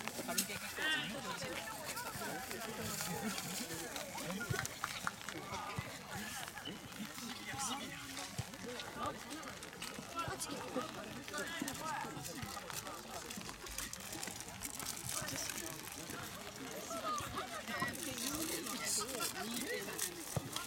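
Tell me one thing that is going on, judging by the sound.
A crowd of young men talks and calls out outdoors.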